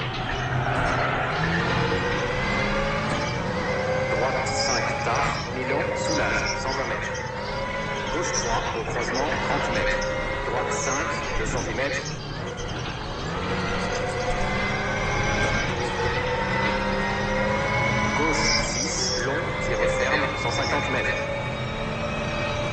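A rally car engine revs high and shifts gears.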